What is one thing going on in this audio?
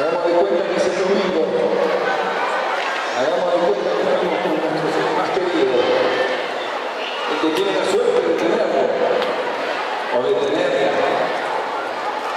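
A middle-aged man speaks with animation into a microphone through a loudspeaker in a large room.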